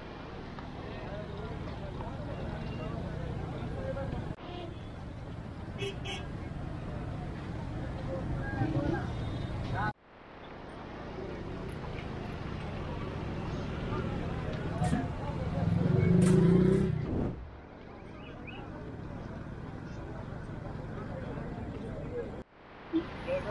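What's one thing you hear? A busy crowd murmurs and chatters outdoors.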